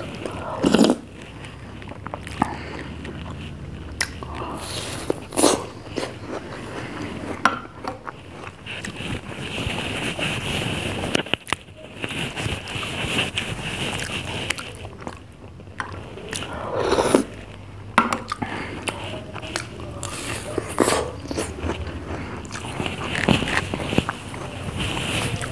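A person bites and munches crunchy food close to a microphone.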